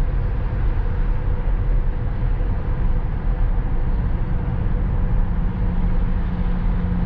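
Tyres roar steadily on a highway inside a moving car.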